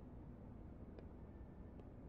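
A knock sounds on a wooden door.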